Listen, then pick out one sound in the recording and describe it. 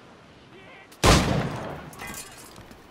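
A pistol fires with a loud bang.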